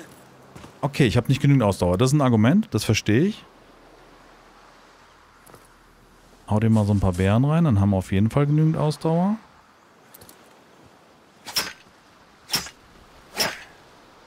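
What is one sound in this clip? Stone picks strike hard rock in sharp, repeated knocks.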